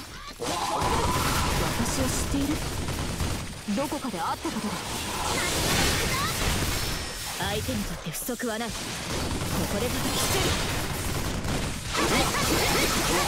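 Swords slash and clash rapidly.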